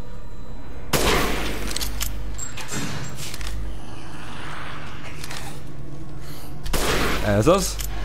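A gunshot rings out loudly.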